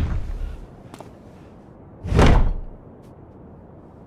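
Heavy thuds knock against a wooden door.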